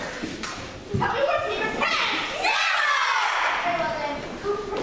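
A child shouts loudly with excitement.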